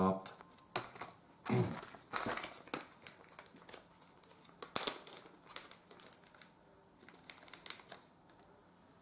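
Plastic wrapping crinkles in hands.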